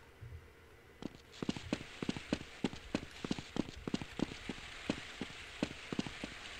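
Footsteps tread on hard ground at a steady, quick pace.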